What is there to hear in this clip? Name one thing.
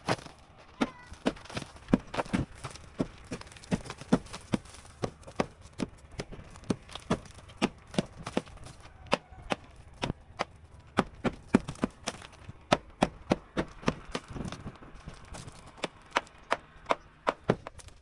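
A hammer bangs sharply and repeatedly against a wall.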